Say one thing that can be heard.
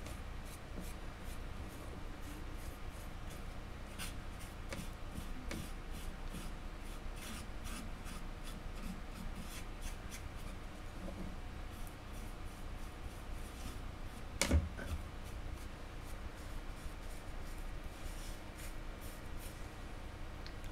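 A hand turns a small object on a hard surface with light clicks and taps.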